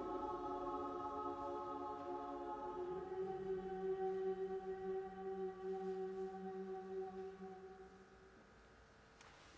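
A choir sings a sustained chord that echoes in a large reverberant hall and fades away.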